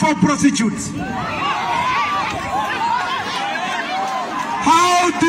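A crowd cheers and chatters.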